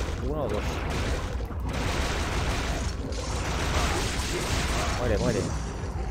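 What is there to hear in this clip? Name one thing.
A monster roars.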